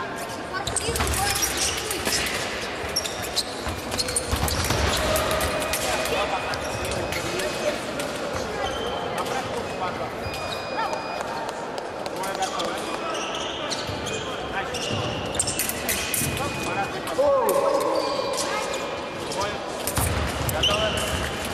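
Fencers' feet stamp and shuffle on a wooden floor in a large echoing hall.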